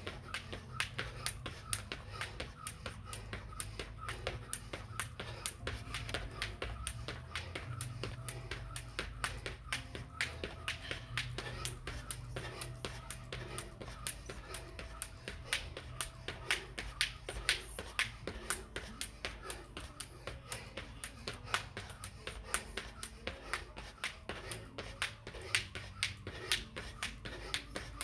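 A jump rope whips and slaps the ground in a fast, steady rhythm.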